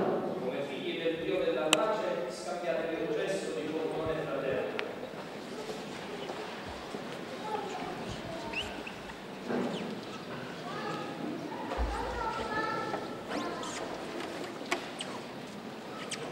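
A crowd of men and women murmur and chat softly nearby.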